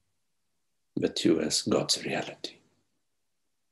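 An adult speaks briefly over an online call.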